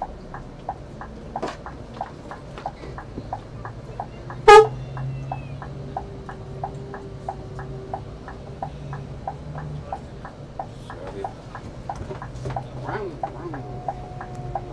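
A large engine hums steadily.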